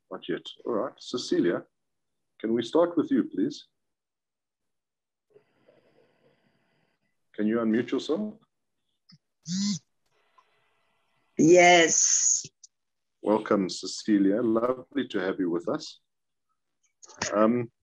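A middle-aged man speaks calmly over an online call, pausing between phrases.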